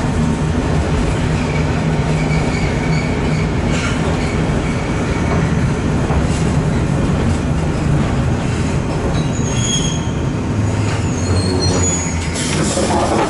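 A tram hums and rumbles as it rolls along and slows to a stop.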